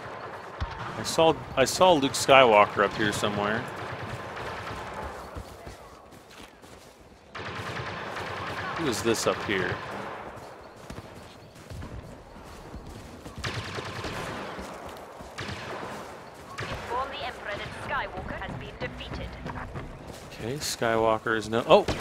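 Laser blasters fire in short bursts.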